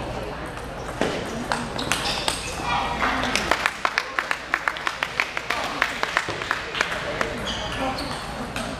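A table tennis ball clicks quickly back and forth off paddles and a table in an echoing hall.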